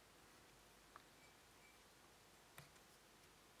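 Small glass beads click softly against each other.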